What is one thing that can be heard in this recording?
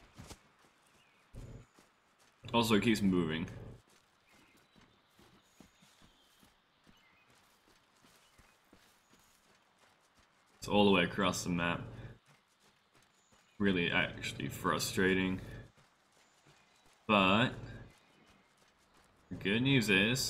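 Footsteps rustle through dry brush and twigs.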